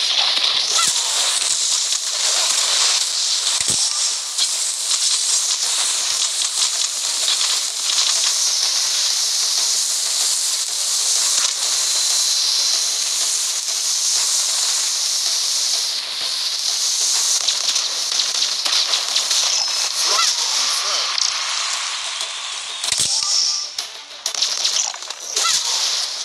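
Water sprays in hissing bursts.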